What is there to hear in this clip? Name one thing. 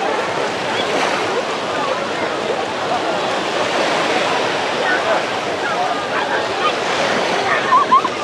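Swimmers splash in shallow water.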